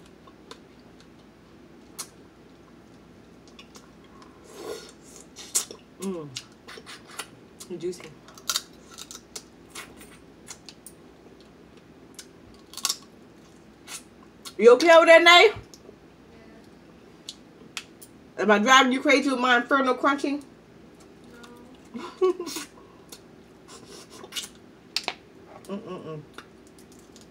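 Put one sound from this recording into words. Crab shells crack and snap in a young woman's hands.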